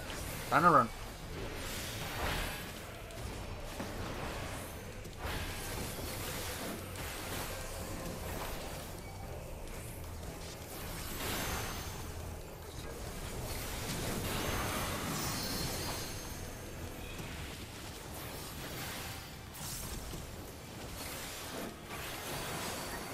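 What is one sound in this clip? Magic spells crash and whoosh in a busy fight.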